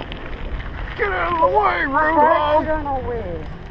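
A young woman calls out loudly nearby.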